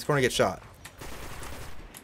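A gun fires loud blasts.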